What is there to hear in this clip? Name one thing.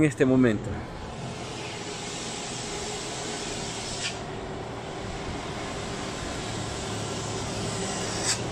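A bus engine hums as the bus climbs the road toward the listener, slowly growing louder.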